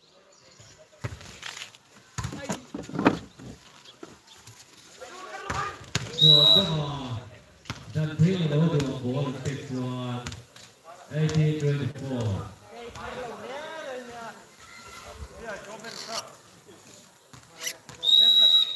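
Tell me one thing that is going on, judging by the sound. A volleyball is struck with dull thuds.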